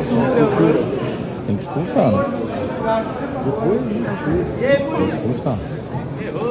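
A crowd of men and women talks and shouts over one another in a large echoing hall.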